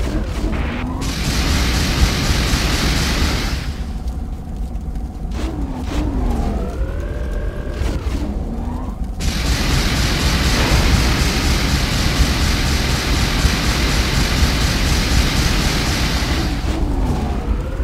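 Heavy guns fire in long rapid bursts.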